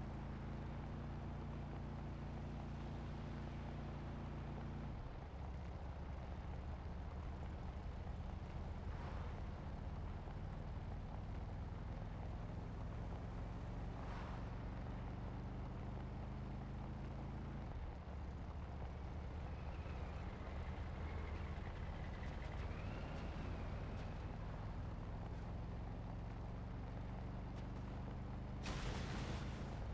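A truck engine drones steadily, shifting gears now and then.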